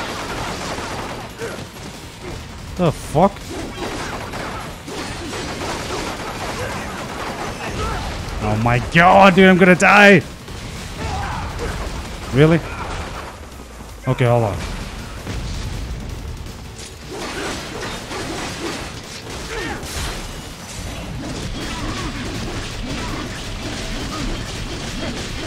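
Blades clash and metal clangs in a fast fight.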